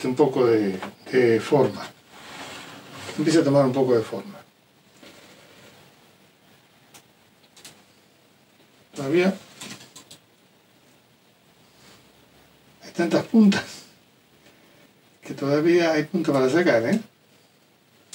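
An older man talks calmly nearby, in short phrases with pauses.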